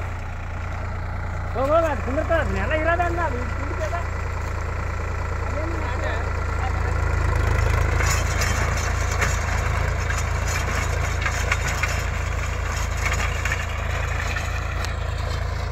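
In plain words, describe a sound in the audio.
A rotary tiller churns and crackles through dry soil.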